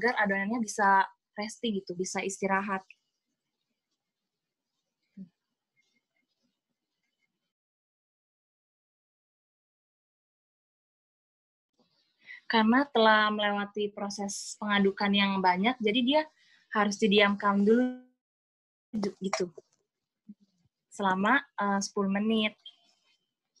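A woman speaks calmly close by, in short bursts with pauses.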